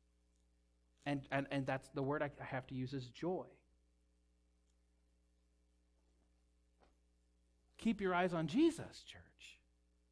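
A man speaks calmly through a microphone in a large room, pausing between phrases.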